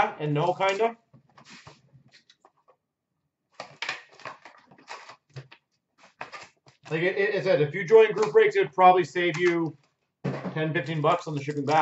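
A cardboard box is handled and set down on a counter.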